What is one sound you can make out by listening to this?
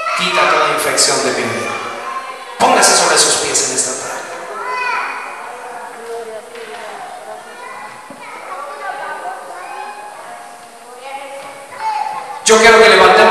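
A man speaks with passion into a microphone over loudspeakers in an echoing hall.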